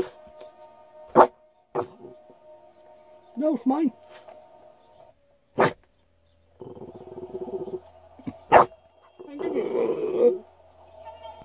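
A dog whines and howls close by.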